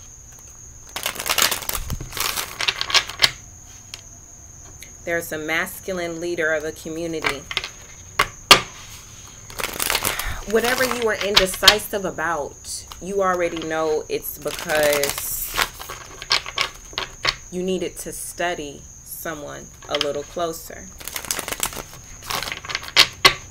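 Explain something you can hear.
Playing cards riffle and slap as they are shuffled close by.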